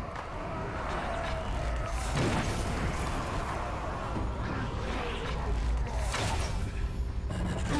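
Blades slash and strike in a fierce fight.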